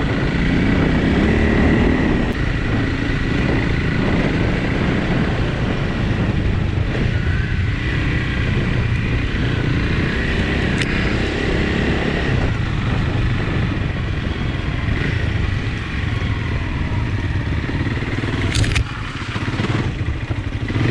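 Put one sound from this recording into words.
A motorbike engine drones and revs nearby.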